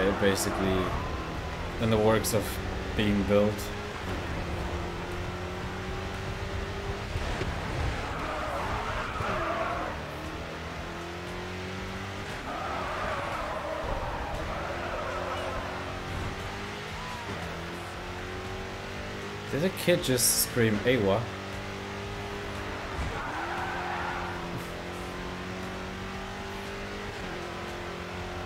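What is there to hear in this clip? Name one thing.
A racing car engine roars and shifts gears at high speed.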